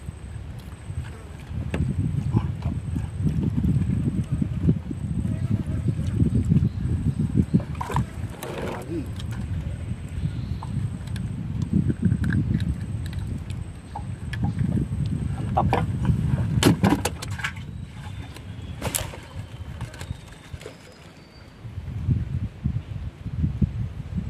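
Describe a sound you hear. Wind blows across the microphone outdoors on open water.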